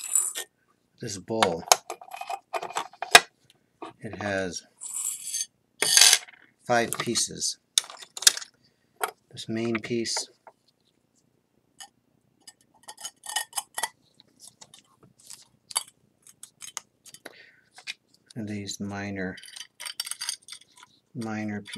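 Pieces of broken pottery clink and scrape against each other.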